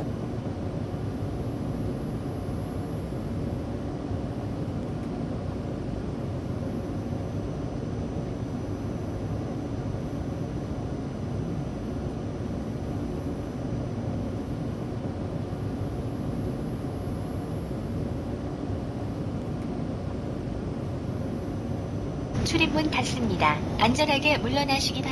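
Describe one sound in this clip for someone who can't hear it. A train carriage hums with a low, steady rumble.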